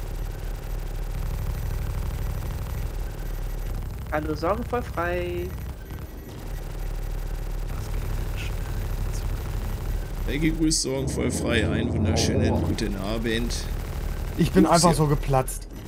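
Laser cannons fire in bursts.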